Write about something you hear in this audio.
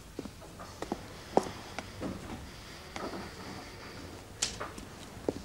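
Footsteps sound on a hard floor.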